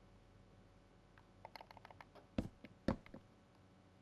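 Wooden ladder blocks are placed with soft clicks.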